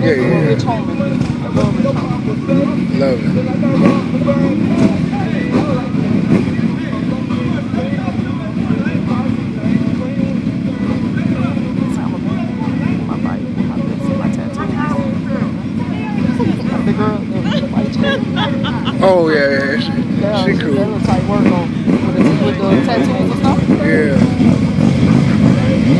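Men talk and call out over the engines.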